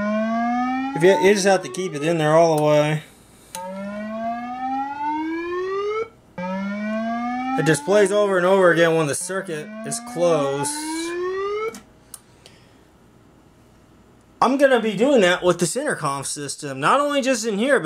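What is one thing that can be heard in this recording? A loudspeaker plays a loud warbling alarm tone.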